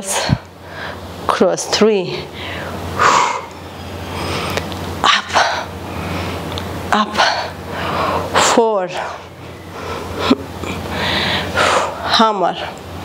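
A young woman talks with animation to the listener.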